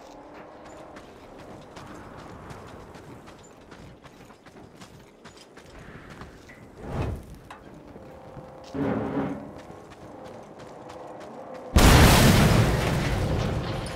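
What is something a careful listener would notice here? Footsteps crunch on gravel at a run.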